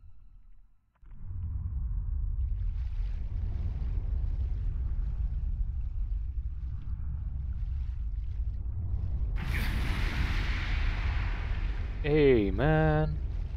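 A low rumble drones steadily.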